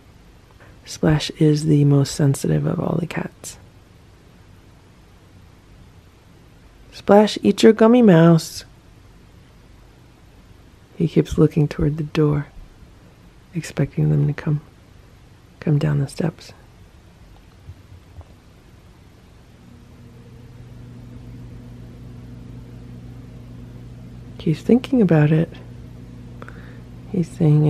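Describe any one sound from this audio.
A cat meows loudly, again and again, close by.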